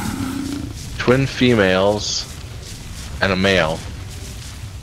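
A large creature lets out a loud, wavering cry.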